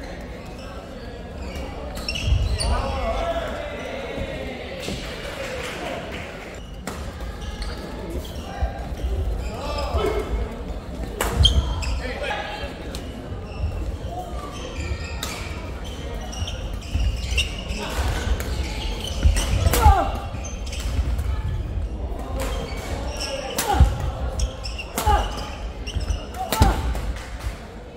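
A crowd murmurs and cheers.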